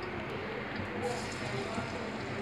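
Chopped garlic drops into hot oil and sizzles.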